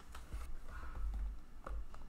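Small boxes clack against each other.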